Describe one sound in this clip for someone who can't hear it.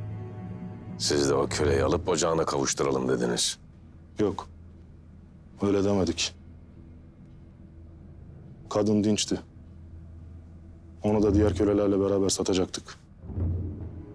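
A man speaks in a low, tense voice, close by, with long pauses.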